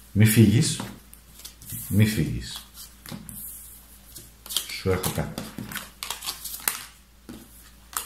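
Playing cards slide and tap on a tabletop.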